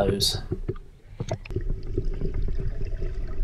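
Water bubbles and rumbles, muffled underwater.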